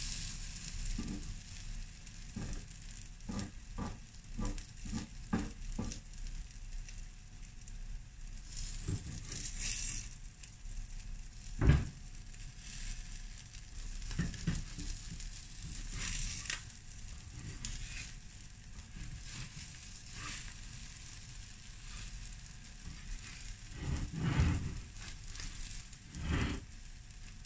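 A metal spatula scrapes and taps against a hot griddle.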